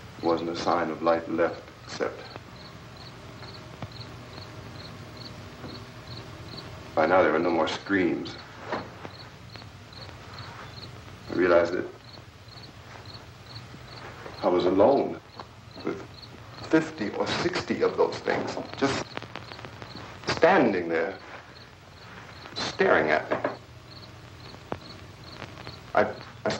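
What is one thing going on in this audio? A man speaks calmly and earnestly nearby.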